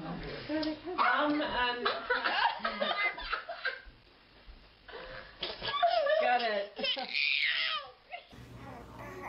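A baby giggles and squeals with laughter close by.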